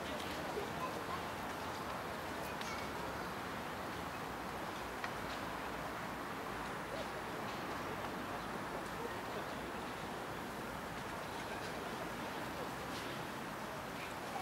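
Wind blows steadily outdoors and rustles the leaves of nearby trees.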